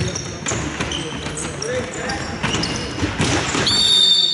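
A ball thumps off a player's foot.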